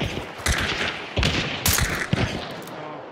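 A machine gun fires several sharp shots.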